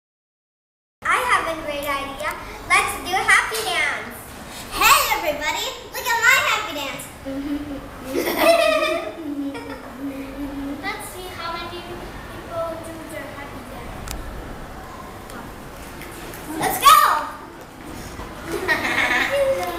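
Children talk and laugh nearby.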